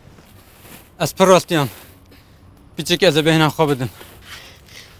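A young man speaks nearby in short bursts.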